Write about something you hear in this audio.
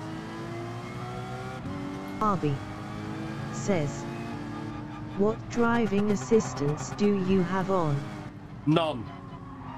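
A racing car engine drones loudly and drops in pitch with each gear change.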